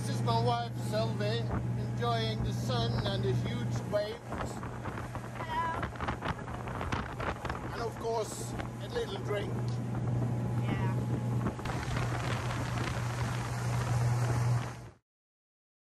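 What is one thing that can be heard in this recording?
A boat engine hums steadily.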